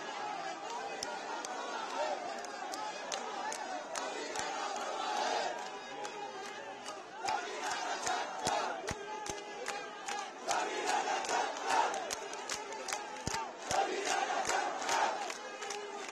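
People in a crowd clap their hands in rhythm.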